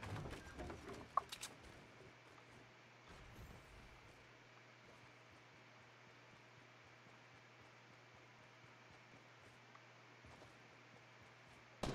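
Footsteps patter across grass.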